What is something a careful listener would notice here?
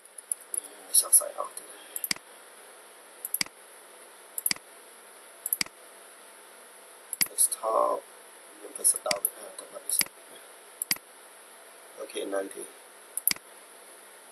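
A computer mouse clicks sharply now and then.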